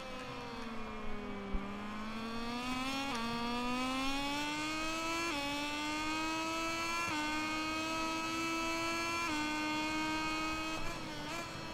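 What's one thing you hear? A motorcycle engine whines loudly, revving up and shifting up through the gears.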